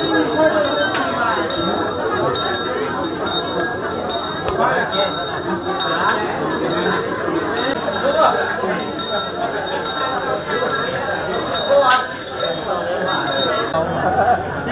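A crowd of men and women chatters nearby in an echoing room.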